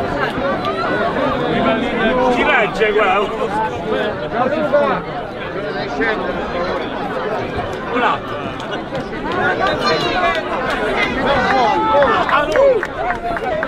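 A crowd of men and women cheers and chatters loudly outdoors.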